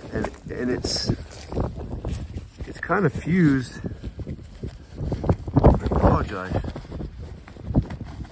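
Fingers scratch and rub against stiff fabric close up.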